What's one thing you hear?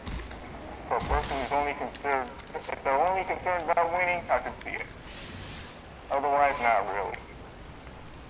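A man talks with animation into a headset microphone, close up.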